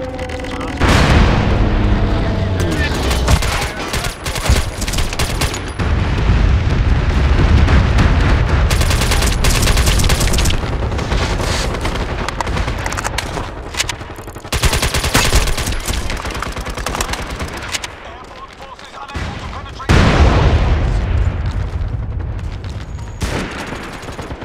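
An automatic rifle fires rapid bursts in a video game.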